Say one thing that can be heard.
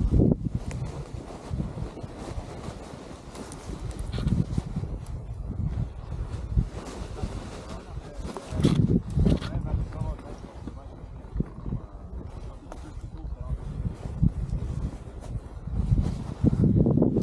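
Wind gusts and buffets against a microphone outdoors.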